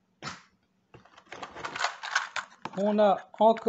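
Small metal parts rattle and clink.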